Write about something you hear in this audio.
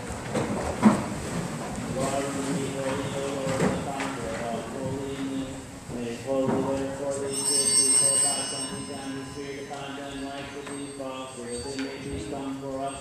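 A congregation sings slowly together in a large echoing hall.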